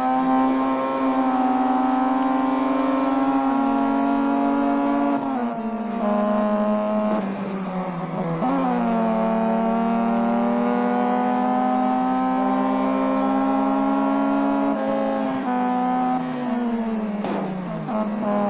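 A racing car engine roars at high revs, dropping in pitch as the car brakes and rising again as it shifts gears.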